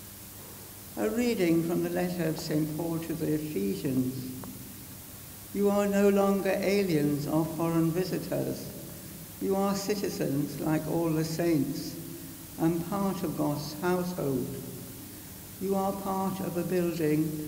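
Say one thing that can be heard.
An elderly woman reads out calmly through a microphone.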